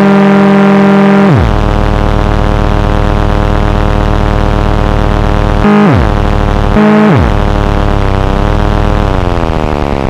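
A synthesizer drones with a buzzing tone that repeatedly swoops down in pitch.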